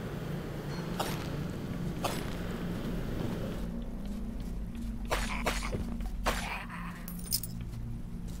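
Short whooshing and hitting sounds of combat ring out.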